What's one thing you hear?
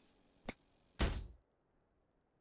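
A short electronic click sounds as a part snaps into place.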